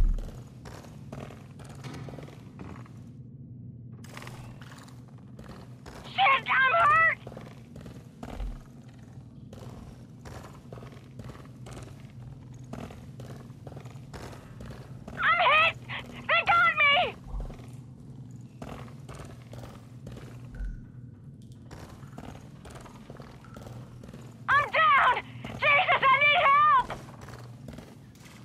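Bubbles rise and pop softly underwater.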